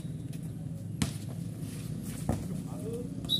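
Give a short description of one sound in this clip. A ball is struck hard.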